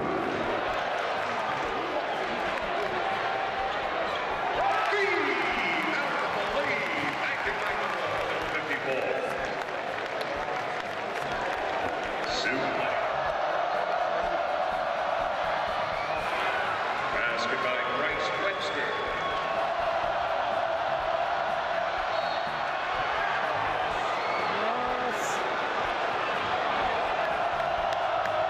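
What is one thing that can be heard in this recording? A large crowd cheers and murmurs throughout in an echoing arena.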